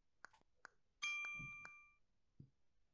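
A control panel gives a short electronic beep.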